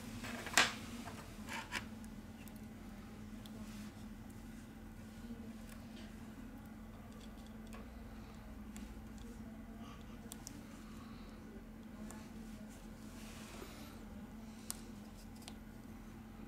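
Gloved fingers tap and click on a phone's plastic parts.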